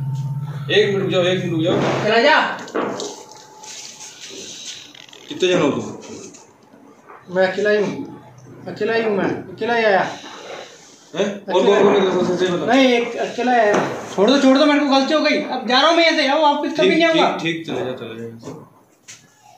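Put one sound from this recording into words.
Young men speak tensely at close range.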